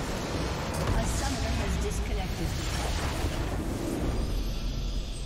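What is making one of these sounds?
A loud blast booms and crackles.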